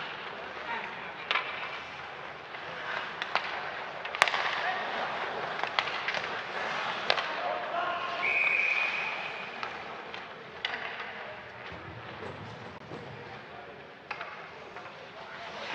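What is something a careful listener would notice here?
Ice skates scrape and carve across the ice.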